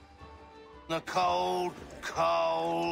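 A man sings nearby.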